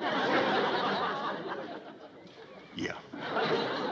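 An older man laughs heartily.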